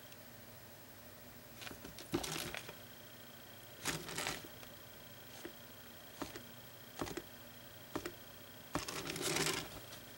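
A fine brush strokes softly across a painted board.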